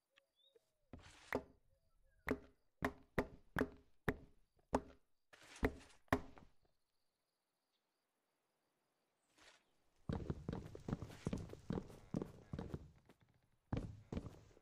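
A tool chops wood with quick, repeated knocks.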